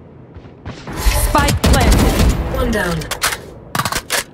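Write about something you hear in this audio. A rifle fires several quick shots.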